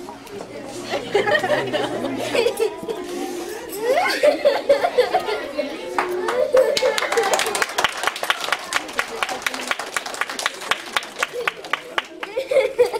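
A group of children shouts and cheers excitedly.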